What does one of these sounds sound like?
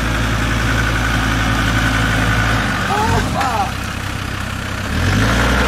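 An off-road vehicle's engine rumbles steadily close by.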